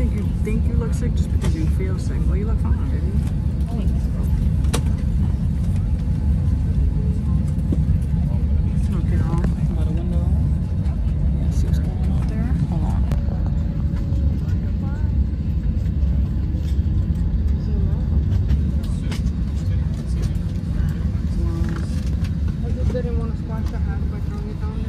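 A steady low roar of a jet cabin fills the air throughout.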